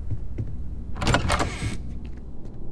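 A heavy sliding door opens with a loud whoosh.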